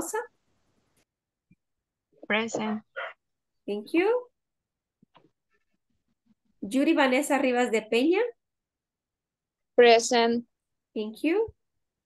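A woman speaks with animation through an online call, in short bursts.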